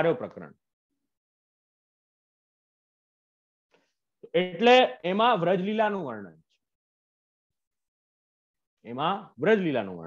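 A young man speaks with animation into a close microphone, pausing between phrases.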